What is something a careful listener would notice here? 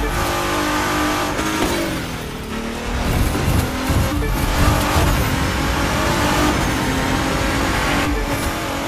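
A race car engine roars at high speed, shifting pitch through the gears.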